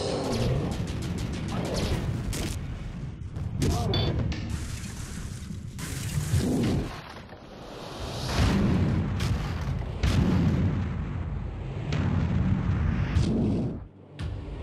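A giant creature's heavy footsteps thud and pound on pavement.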